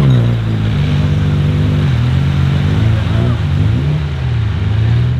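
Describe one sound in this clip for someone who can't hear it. An off-road vehicle's engine revs hard and labours, rising and falling.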